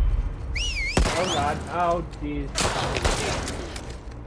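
A pistol fires loud shots that echo.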